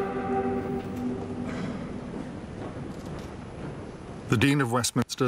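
A choir sings a sustained chord that fades away in a large echoing hall.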